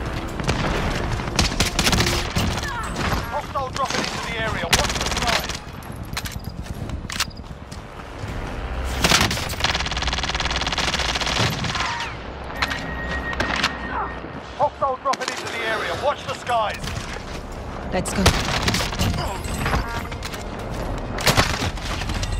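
Guns fire in sharp, rapid bursts.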